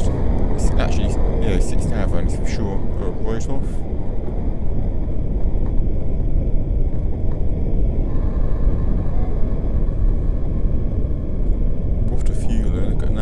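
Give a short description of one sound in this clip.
Fire roars in a loud rumbling blast.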